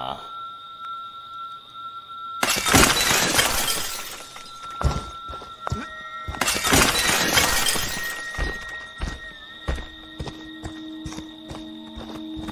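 Heavy footsteps thud and crunch on the ground.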